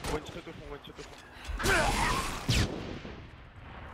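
A heavy blow lands in a close fight.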